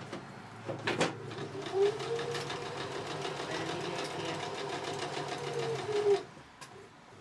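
A sewing machine whirs rapidly as it stitches.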